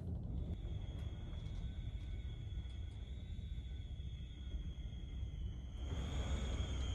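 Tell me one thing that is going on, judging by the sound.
Wind howls and whistles against a window.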